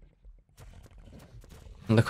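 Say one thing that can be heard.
Water splashes as an animal wades through it.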